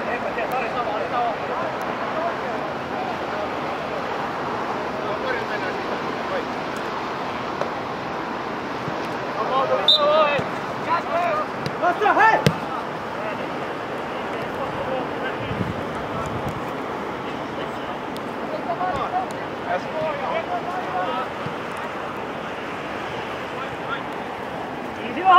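Men shout to each other across an open pitch outdoors.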